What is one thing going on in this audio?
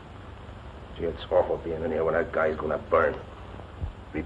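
A man speaks firmly nearby.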